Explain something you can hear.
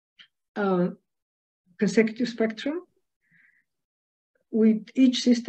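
A middle-aged woman speaks calmly, heard through an online call.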